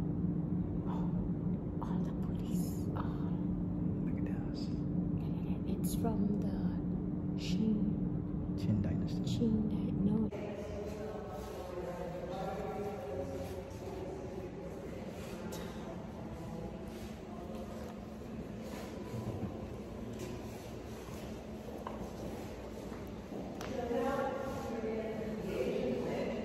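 A woman talks close to a phone's microphone.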